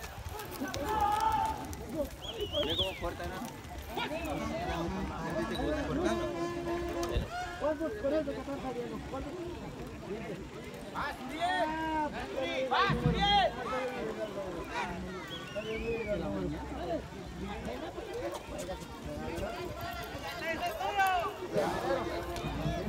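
A crowd chatters and shouts outdoors.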